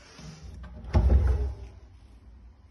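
A small wooden drawer slides open.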